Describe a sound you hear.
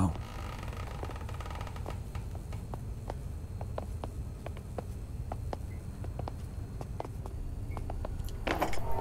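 Footsteps tap slowly and steadily on a stone floor.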